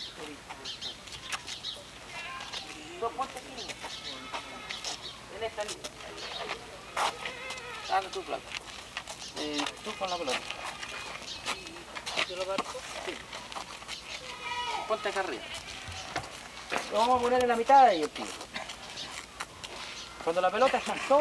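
Several young men talk and call out nearby outdoors.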